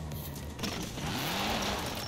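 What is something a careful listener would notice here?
Tyres skid on the road.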